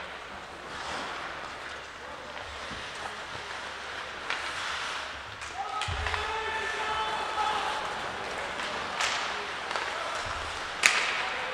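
Skates scrape and carve on ice in a large echoing rink.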